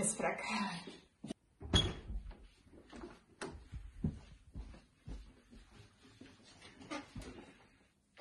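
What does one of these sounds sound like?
Footsteps thud across a floor.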